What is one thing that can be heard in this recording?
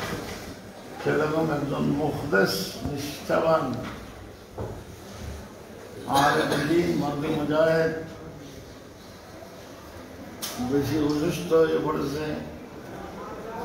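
An elderly man speaks calmly and slowly, close by.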